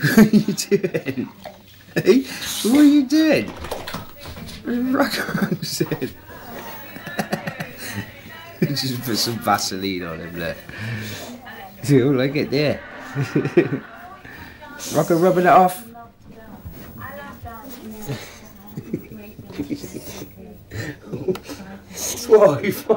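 A dog grunts and snorts excitedly, close by.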